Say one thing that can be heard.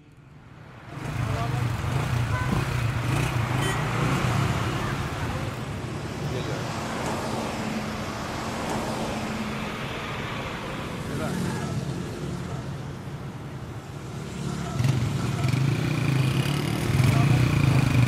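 Cars drive past on a busy street.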